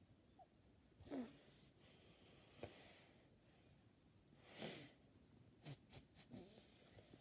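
A young girl giggles, stifling her laughter close to the microphone.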